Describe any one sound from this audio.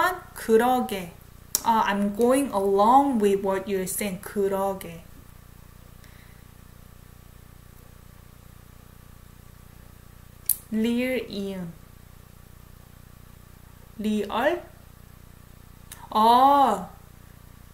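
A young woman speaks with animation close to a microphone, pausing between phrases.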